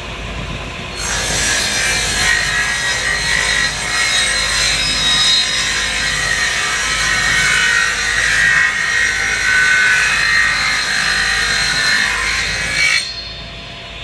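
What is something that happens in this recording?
A table saw whines loudly as it rips through wood.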